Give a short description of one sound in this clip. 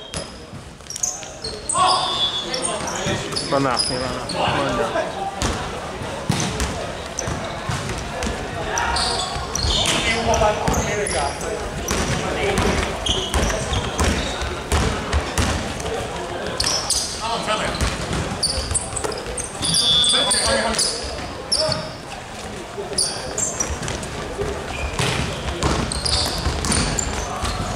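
Young men shout and call out to each other during play.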